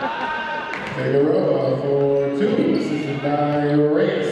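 Spectators cheer and shout loudly in an echoing gym.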